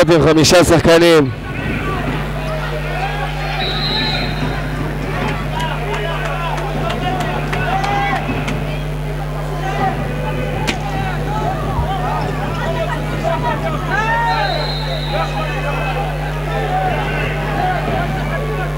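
A ball thuds as it bounces on the floor.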